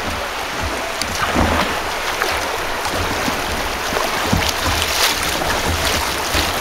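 River rapids rush and churn around a kayak.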